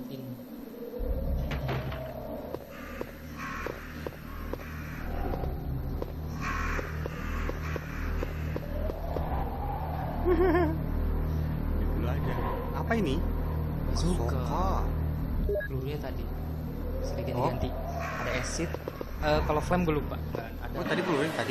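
Game music plays with a low drone.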